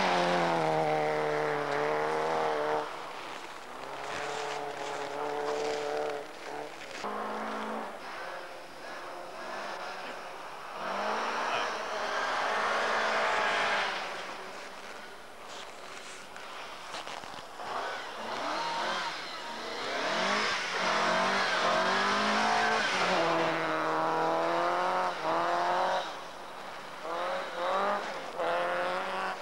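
Rally car engines rev hard and whine through the gears.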